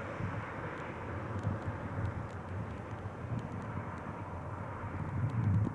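Wind blusters against the microphone.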